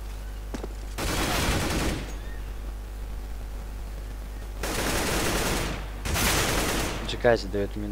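A rifle fires in loud rapid bursts.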